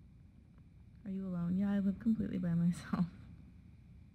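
A young woman speaks close to a microphone, calmly and softly.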